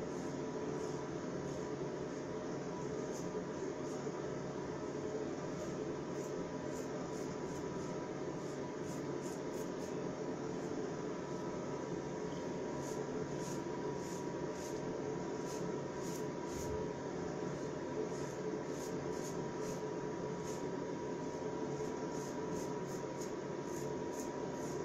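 A razor scrapes through stubble in short, quick strokes.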